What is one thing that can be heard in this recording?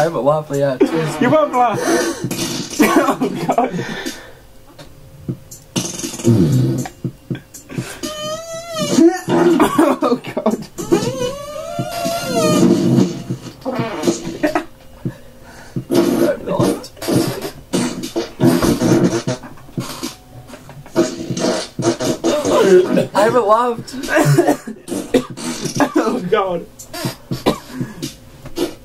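A second young man talks and jokes close by.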